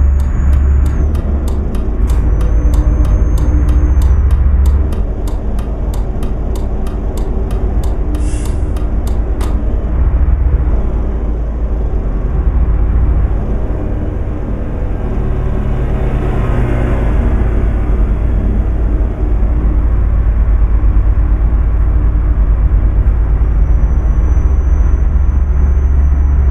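A truck engine drones steadily with a deep rumble.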